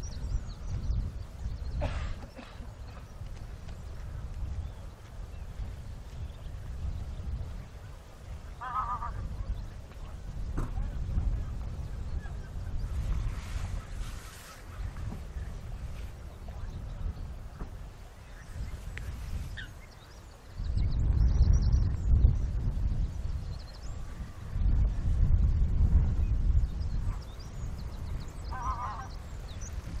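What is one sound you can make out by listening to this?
A cow wades slowly through water, splashing softly.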